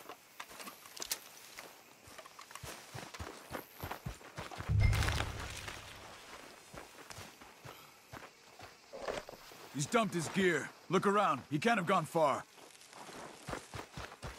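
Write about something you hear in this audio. Footsteps rustle through dry cornstalks.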